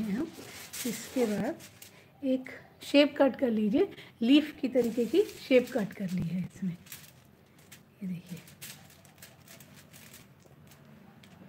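Aluminium foil crinkles under fingers.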